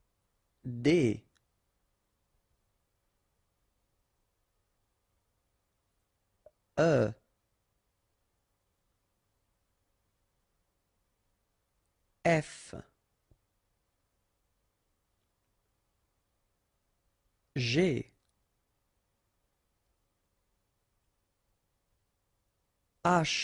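A man's voice names single letters aloud, one at a time, with long pauses between them.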